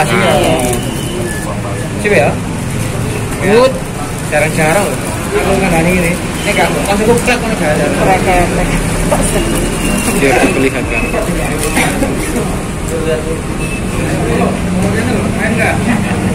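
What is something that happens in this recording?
A plastic bag crinkles as it is handled close by.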